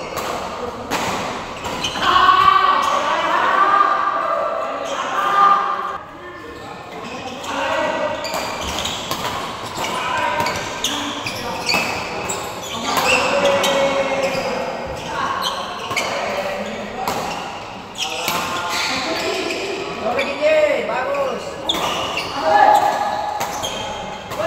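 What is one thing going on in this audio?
Men call out and talk in a large echoing hall.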